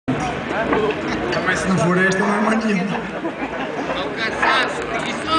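A man sings into a microphone through a loudspeaker.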